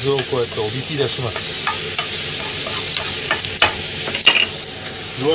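A wooden spatula scrapes and clatters against a frying pan.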